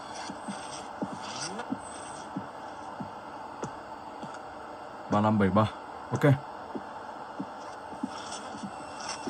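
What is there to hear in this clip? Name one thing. Fingertips tap and slide softly on a glass touchscreen.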